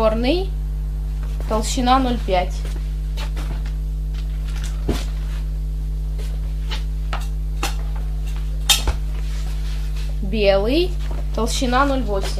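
Clothing rustles and brushes close by.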